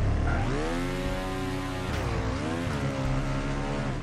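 A car bursts into flames with a roaring blast.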